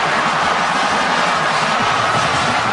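A marching band plays brass instruments loudly.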